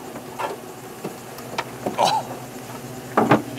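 A car hood creaks and thuds shut.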